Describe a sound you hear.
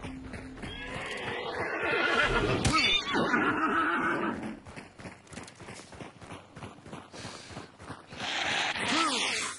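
Footsteps crunch quickly over dry ground.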